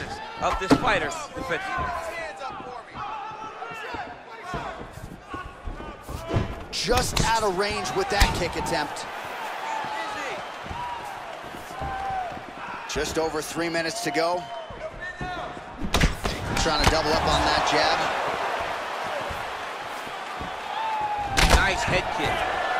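Punches and kicks land on a body with heavy thuds.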